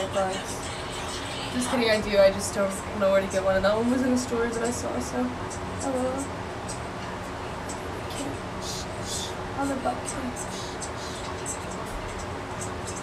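Fabric rustles as a young woman handles a scarf.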